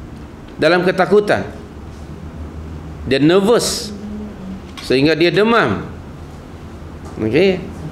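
An elderly man speaks calmly and with expression into a nearby microphone.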